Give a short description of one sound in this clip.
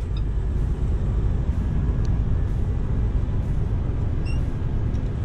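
A vehicle engine hums steadily inside the cab while driving.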